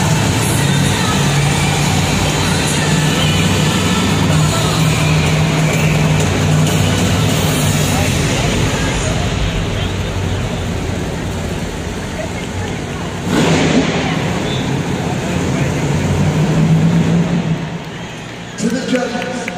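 Monster truck engines rumble loudly in a large echoing arena.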